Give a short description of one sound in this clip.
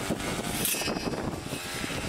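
Garden shears snip through plant stems.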